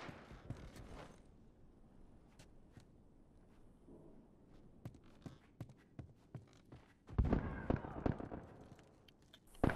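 Footsteps shuffle softly across a floor.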